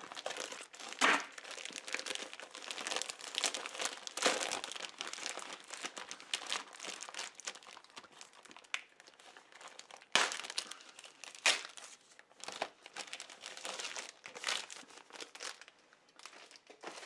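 A plastic sleeve crinkles and rustles as it is handled.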